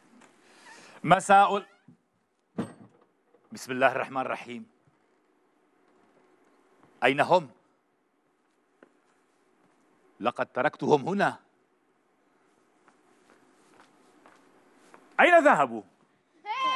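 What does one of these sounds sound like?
An elderly man speaks loudly and with animation.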